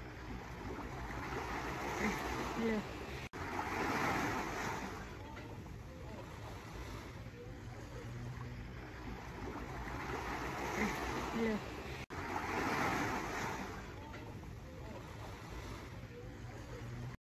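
Small waves wash gently onto a sandy shore in regular surges.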